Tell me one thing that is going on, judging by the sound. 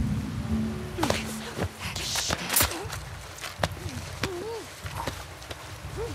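A man grunts in a struggle.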